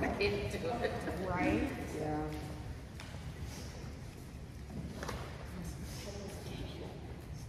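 A woman reads aloud calmly in a slightly echoing room.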